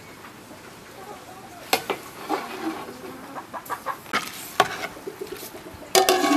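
Thick stew sloshes as it is stirred.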